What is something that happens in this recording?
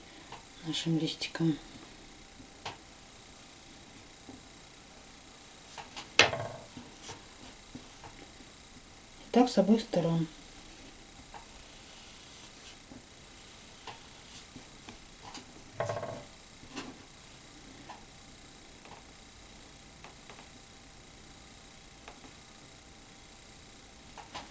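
Fingers rub and press a thin foam sheet on paper.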